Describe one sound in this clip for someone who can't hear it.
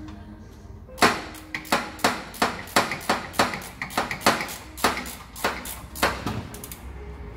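A metal tool knocks sharply against an engine in quick, regular strokes.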